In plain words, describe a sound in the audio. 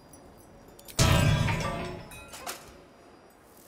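A magical burst rings out as a lantern flares with light.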